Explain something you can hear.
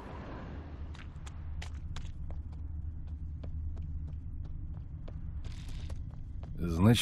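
Footsteps run quickly along a dirt path.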